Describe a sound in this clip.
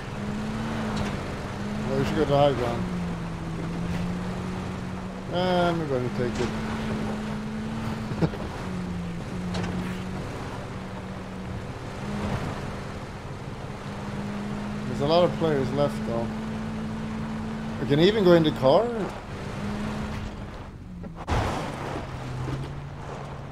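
A vehicle engine drones steadily as it drives over rough ground.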